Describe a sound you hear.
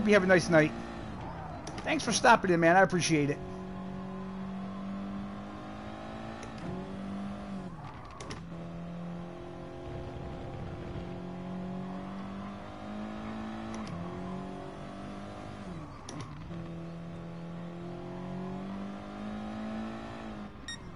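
A racing car engine hums steadily, rising and falling in pitch as it shifts gears.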